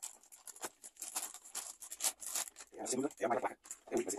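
A plastic bag crinkles and rustles in hands.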